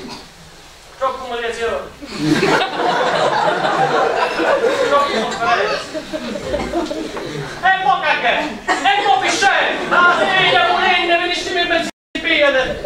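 A man speaks loudly and theatrically on a stage.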